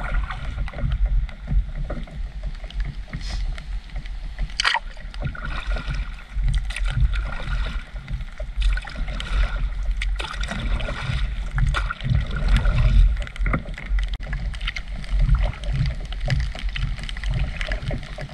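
Water splashes and laps against the hull of a moving boat.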